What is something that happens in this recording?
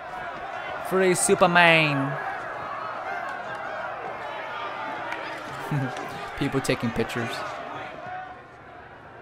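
A crowd of men and women chants and cheers loudly.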